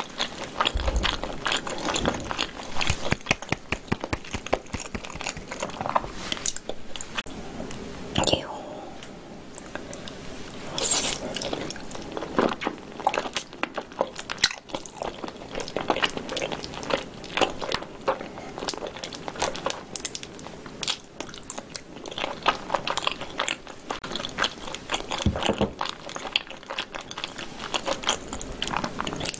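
A young woman chews food wetly and noisily close to a microphone.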